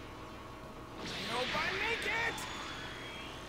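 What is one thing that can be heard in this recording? An energy blast bursts with a loud whoosh.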